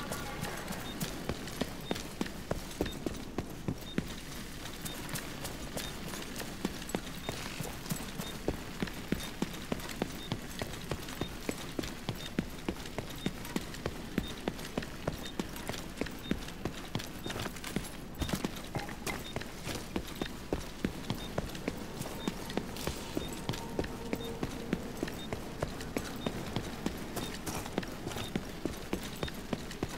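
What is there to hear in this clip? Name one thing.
Footsteps run quickly and steadily over hard ground.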